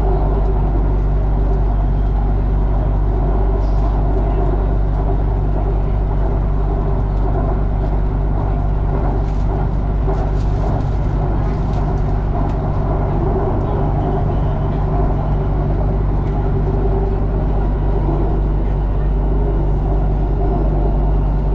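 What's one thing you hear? A train rumbles and hums steadily along its tracks, heard from inside a carriage.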